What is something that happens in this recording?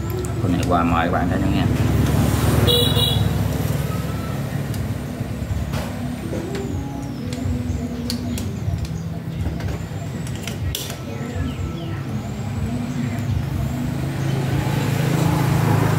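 Metal tongs clink against a grill.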